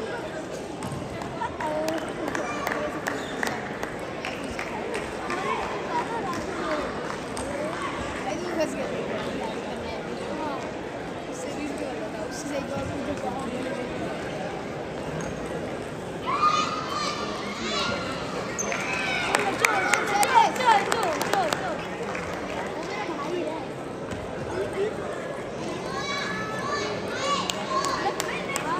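Table tennis balls click against paddles and tables in a large echoing hall.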